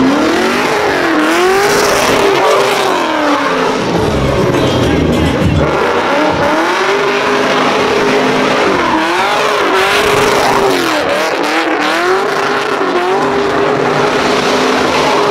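A car engine revs hard and loud, rising and falling in pitch.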